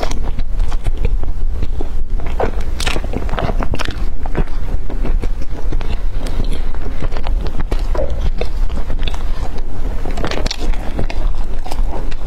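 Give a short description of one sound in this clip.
A young woman chews food loudly and wetly close to a microphone.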